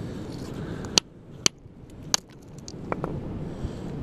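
A rock hammer strikes rock with sharp cracks.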